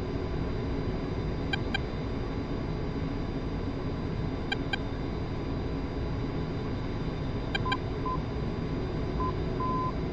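A jet engine rumbles steadily.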